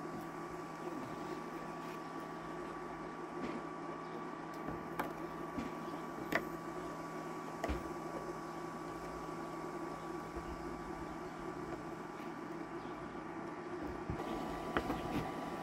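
A knife knocks on a wooden board as it cuts through cheese.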